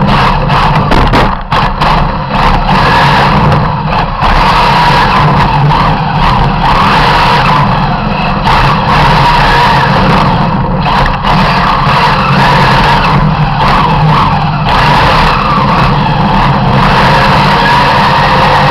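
A racing car engine roars loudly up close, rising and falling in pitch.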